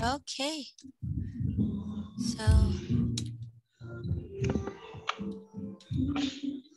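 A young girl answers in a soft voice over an online call.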